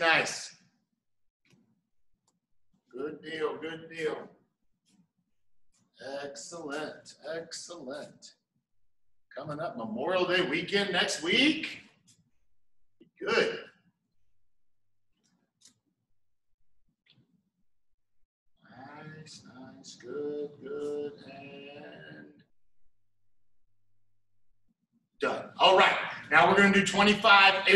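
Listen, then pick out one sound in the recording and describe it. A middle-aged man speaks calmly in a room with some echo.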